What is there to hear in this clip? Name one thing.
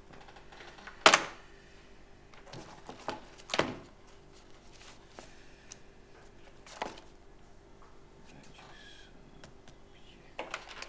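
Papers rustle and thump on a desk.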